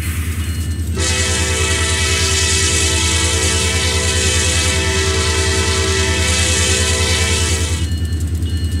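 A train horn blares loudly for several seconds.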